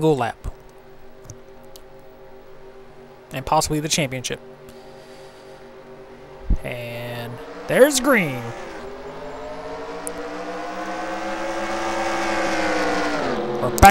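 Racing car engines drone at high speed, whining up and down in pitch as the cars pass.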